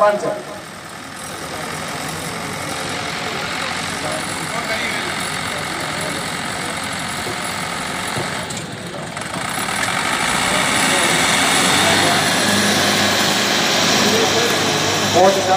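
Tractor engines roar loudly under strain.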